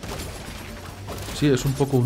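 A crate bursts with a small pop in a video game.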